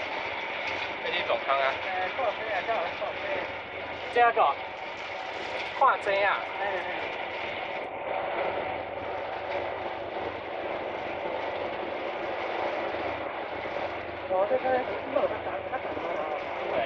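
A rail cart rumbles and clatters steadily along the tracks.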